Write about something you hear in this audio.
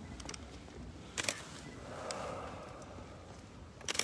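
Hard footsteps click on the ground as a man walks.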